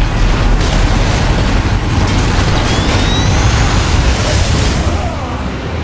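Laser weapons fire in quick bursts.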